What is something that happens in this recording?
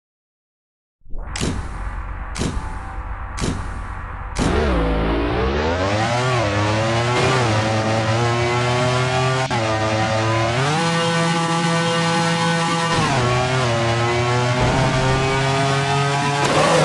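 A game car engine roars and revs up and down through gear changes.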